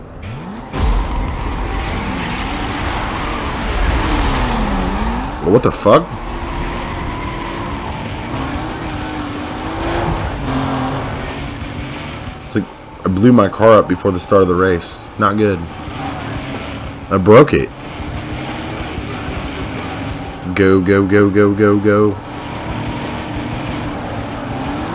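A racing car engine roars and revs up through the gears at high speed.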